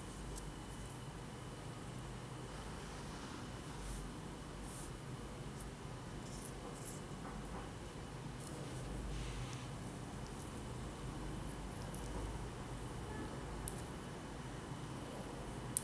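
A kitten's paws patter softly on a hard floor.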